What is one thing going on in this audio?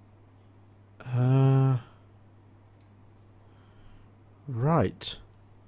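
A young man makes long, drawn-out vocal sounds close to a microphone.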